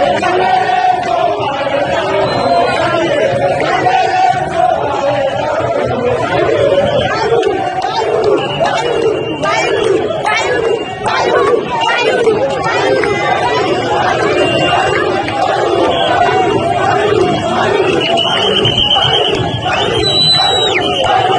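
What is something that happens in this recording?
A crowd of men and women shouts and cheers excitedly close by.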